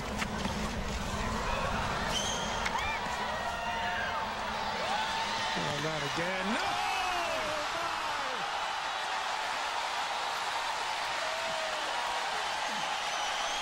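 A large crowd cheers and applauds loudly.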